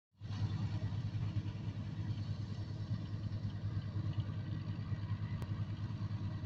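A diesel tractor engine runs under load.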